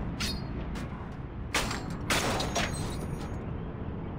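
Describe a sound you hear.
A metal latch rattles.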